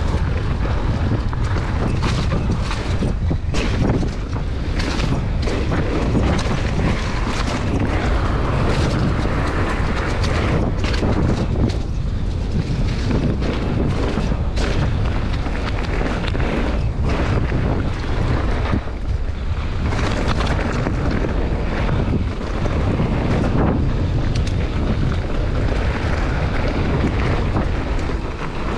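A bicycle frame clatters and rattles over bumps.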